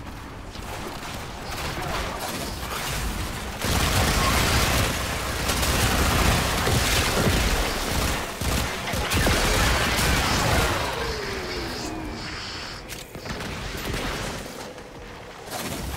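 Loud video game combat effects whoosh, roar and crackle.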